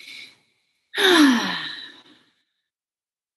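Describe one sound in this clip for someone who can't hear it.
A man laughs briefly over an online call.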